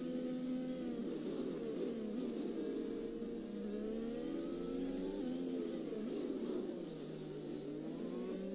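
A Formula One car's engine drops in pitch, shifting down under braking.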